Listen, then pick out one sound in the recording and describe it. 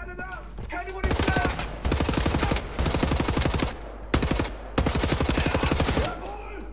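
Two machine guns fire in rapid, loud bursts.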